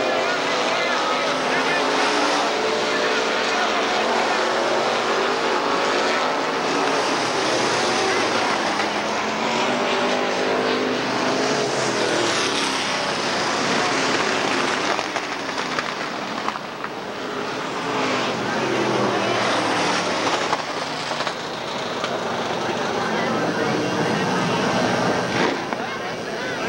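Race car engines roar loudly as the cars speed around a dirt track.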